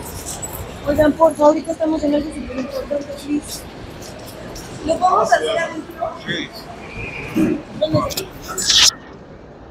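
Several men call out and talk loudly close by.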